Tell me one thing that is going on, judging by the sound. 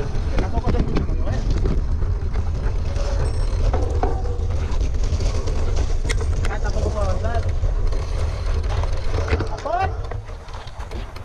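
Bicycle tyres crunch over a gravel trail.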